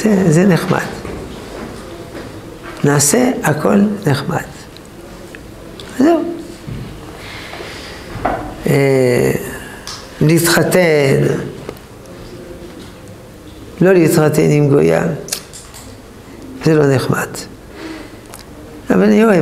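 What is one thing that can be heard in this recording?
An elderly man speaks calmly and expressively, close by, with pauses between phrases.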